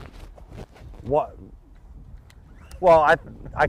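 A man speaks in short bursts nearby.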